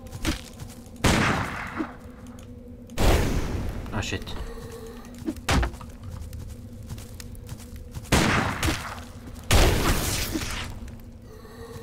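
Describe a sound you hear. Magic blasts whoosh and burst loudly, again and again.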